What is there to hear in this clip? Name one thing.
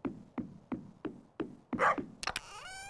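Footsteps tap quickly and evenly.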